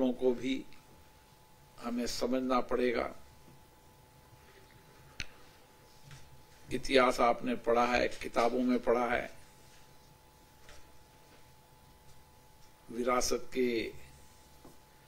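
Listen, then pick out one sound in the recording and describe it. A middle-aged man speaks calmly into a microphone in short bursts with pauses.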